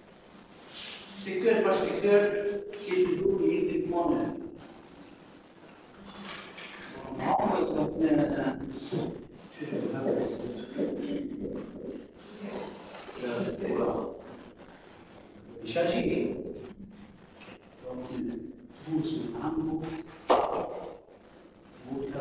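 A middle-aged man talks with animation nearby, with pauses.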